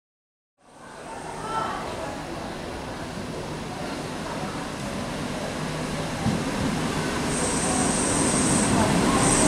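A train rumbles closer along the tracks, growing louder.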